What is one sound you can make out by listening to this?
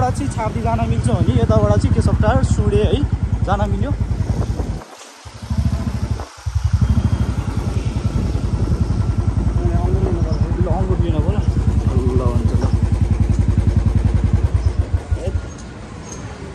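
A motorbike engine putters steadily up close.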